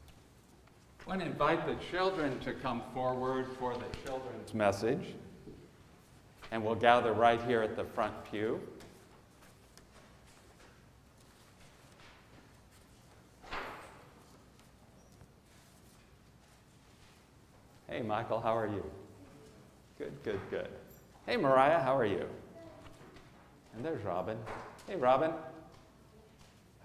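A man reads out through a microphone in a large echoing room, with pauses between phrases.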